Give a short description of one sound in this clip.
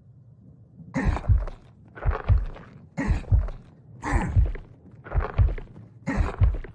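A creature drags itself forward with heavy, rhythmic thuds.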